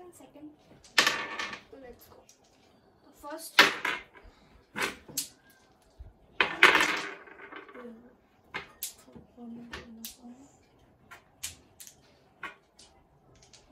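Small stones click and clatter onto a table.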